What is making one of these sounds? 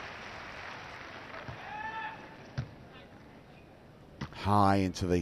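A volleyball is struck by hand with a sharp slap.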